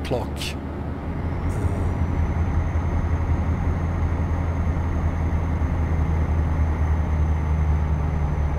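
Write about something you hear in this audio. A truck engine hums low and steady while driving.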